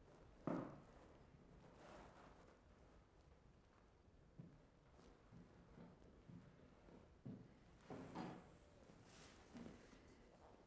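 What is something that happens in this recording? Objects knock and rattle softly as a man rummages through a cabinet.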